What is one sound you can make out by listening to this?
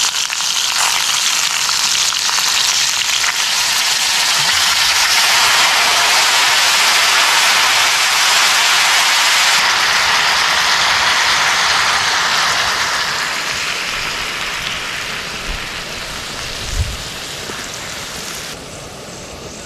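Food sizzles loudly in a hot pot.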